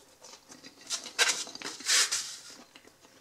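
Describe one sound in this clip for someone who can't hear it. Fingers pick chips out of a foam container with a soft rustle and scrape.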